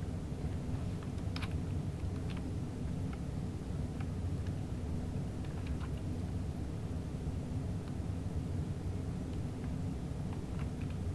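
Train wheels click now and then over rail joints.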